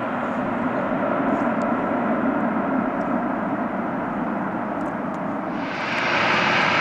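A twin-engine jet airliner roars as it rolls down a runway for takeoff.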